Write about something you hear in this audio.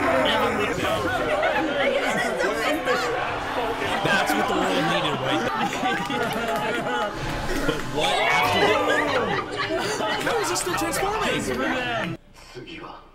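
A young woman laughs and screams with excitement.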